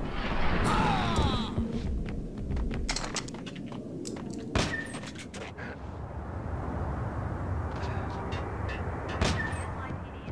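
A pistol fires sharp, loud shots.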